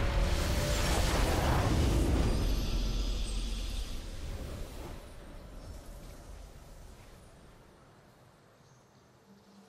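A triumphant game fanfare swells loudly and then slowly fades away.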